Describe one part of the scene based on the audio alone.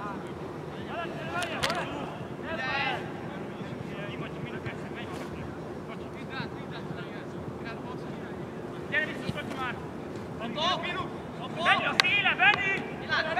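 Young men shout to each other across an outdoor field.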